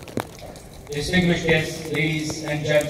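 A man speaks steadily through a microphone and loudspeakers.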